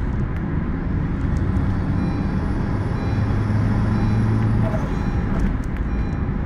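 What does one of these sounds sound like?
Road and wind noise roar steadily inside the car.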